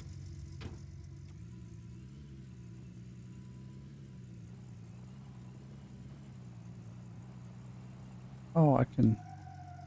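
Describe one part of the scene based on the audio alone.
A pickup truck engine hums and revs.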